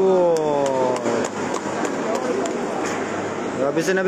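A table tennis ball clicks back and forth in a large echoing hall.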